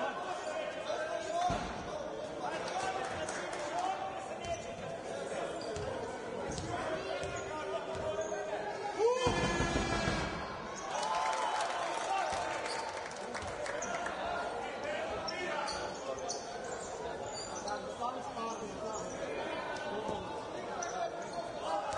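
A crowd murmurs and chants in a large echoing arena.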